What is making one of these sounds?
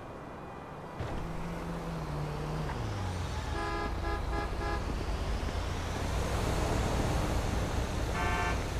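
A truck engine rumbles loudly past close by.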